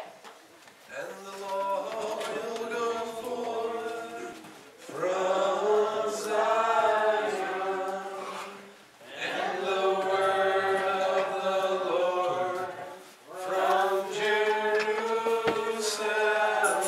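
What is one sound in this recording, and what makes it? A man sings a worship song through a loudspeaker in an echoing hall.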